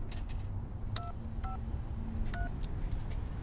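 Payphone keys beep as a number is dialled.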